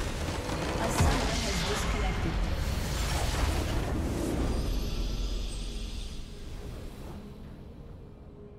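A huge explosion booms and rumbles, then fades away.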